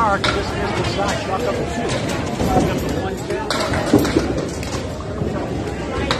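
Bowling balls rumble down wooden lanes in a large echoing hall.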